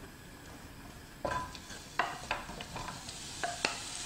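Onion slices drop into a hot pan.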